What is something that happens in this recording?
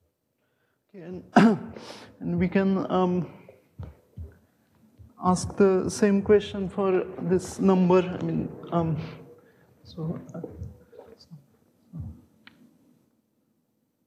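A young man lectures calmly, close by.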